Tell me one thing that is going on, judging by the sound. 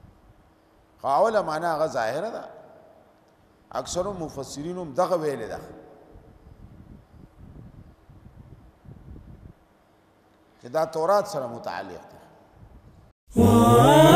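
An elderly man recites in a slow, melodic chant into a microphone.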